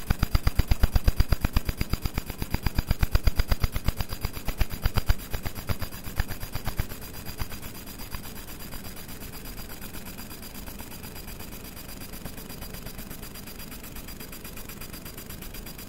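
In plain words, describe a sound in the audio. A fiber laser crackles and buzzes as it engraves metal.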